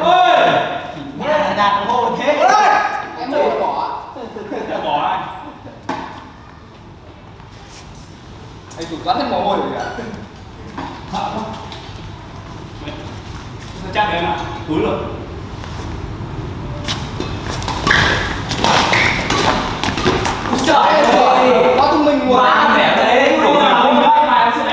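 Men talk and call out across a hall that echoes.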